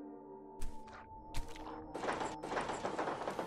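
Game music plays with steady electronic tones.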